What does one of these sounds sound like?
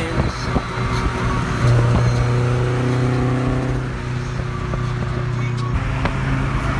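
A sports car's engine drones loudly alongside on a highway.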